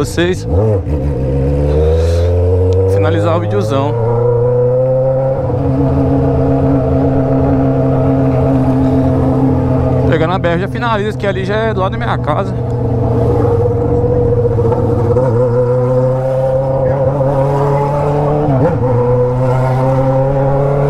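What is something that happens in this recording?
A Honda Hornet inline-four motorcycle with a straight-pipe exhaust rides along, the engine revving and shifting.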